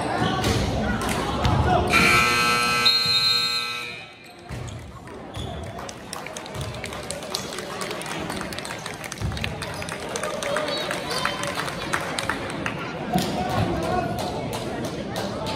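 A crowd of spectators cheers and chatters in an echoing gym.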